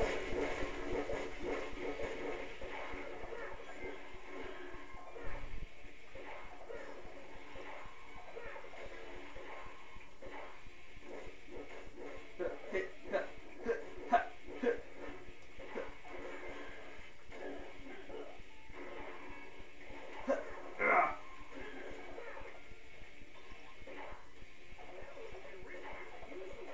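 Game music plays steadily from a television speaker.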